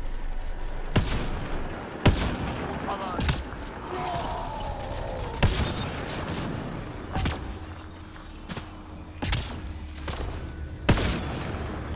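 Sniper rifle shots crack sharply.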